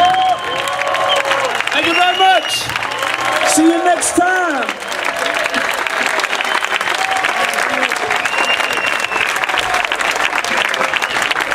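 A crowd of young people cheers and shouts close by.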